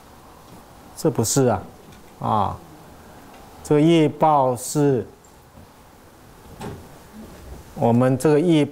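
A middle-aged man speaks calmly into a microphone in short phrases, with pauses between them.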